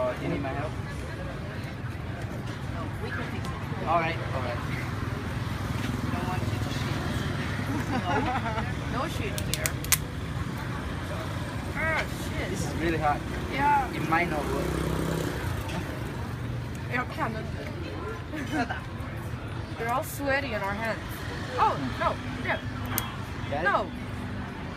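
A man and women talk and laugh casually close by.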